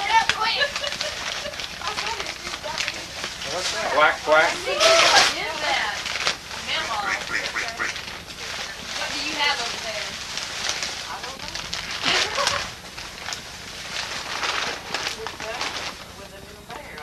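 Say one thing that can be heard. Several adults chat and laugh together close by in a room.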